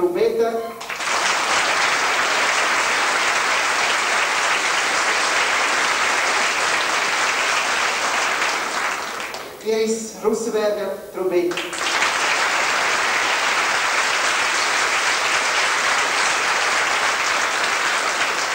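An audience claps and cheers loudly in a large hall.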